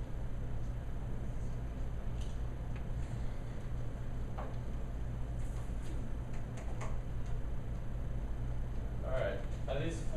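Paper is pressed and tapped onto a chalkboard.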